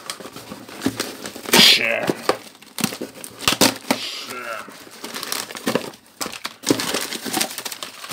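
Cardboard scrapes and rubs as a box is handled.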